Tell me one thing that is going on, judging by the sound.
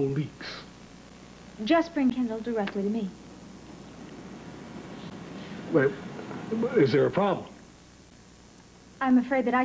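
A woman speaks earnestly, close by.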